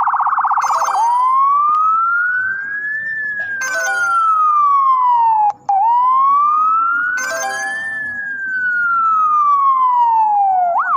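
An ambulance siren wails, rising and falling slowly.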